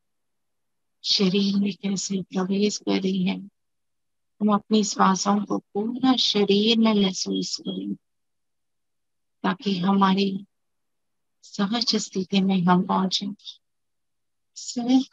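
A woman speaks calmly and slowly over an online call.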